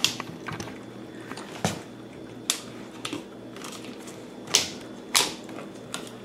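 A small dog sniffs and snuffles close by.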